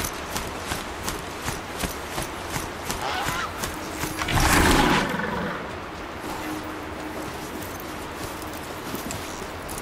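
Heavy mechanical footsteps clomp steadily over the ground.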